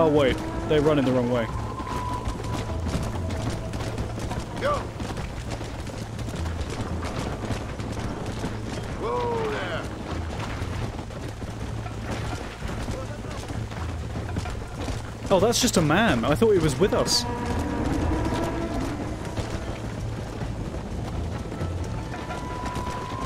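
Horse hooves thud in a steady gallop.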